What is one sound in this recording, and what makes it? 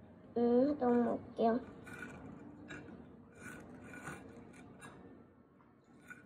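Food on wooden sticks slides and knocks against a plate.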